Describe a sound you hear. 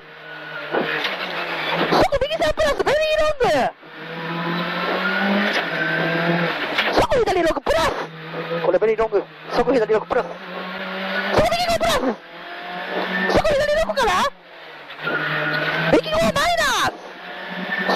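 A rally car engine roars and revs hard, rising and falling.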